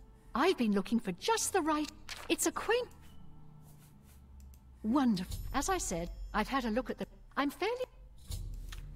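A woman speaks calmly and graciously, close by.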